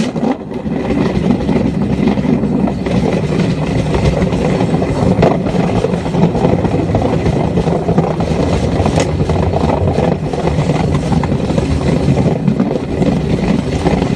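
A motorbike engine rumbles steadily at speed.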